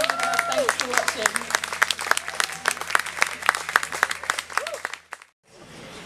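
An audience claps and applauds outdoors.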